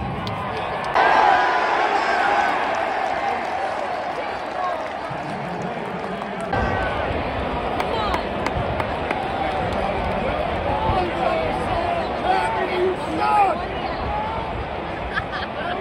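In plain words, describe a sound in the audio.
Nearby fans shout and whoop loudly.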